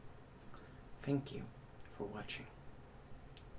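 A young man speaks briefly and clearly into a close microphone.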